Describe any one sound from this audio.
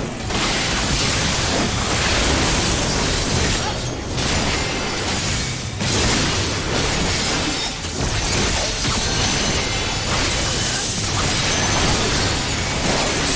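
Magic spells blast and crackle with booming impacts.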